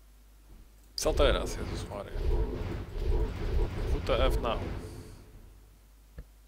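A loud rumbling, roaring game effect swells and fades away.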